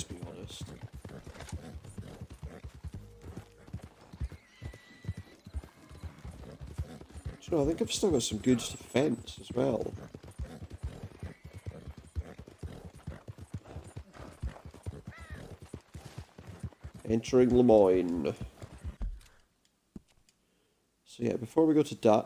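A horse's hooves thud steadily on a dirt track.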